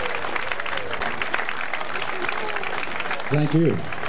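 A crowd claps along in rhythm.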